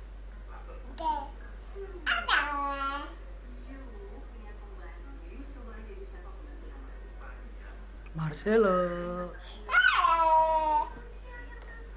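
A toddler squeals and babbles loudly close by.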